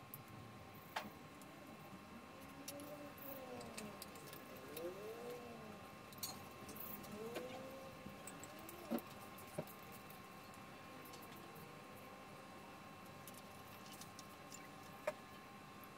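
Metal tools clink against motorcycle parts.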